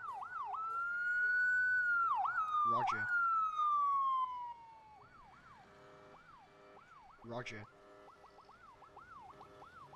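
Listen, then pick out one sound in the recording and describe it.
A police siren wails up and down, loud at first and then farther off.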